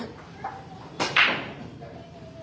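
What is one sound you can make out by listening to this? A cue ball smashes into a rack of billiard balls with a loud crack.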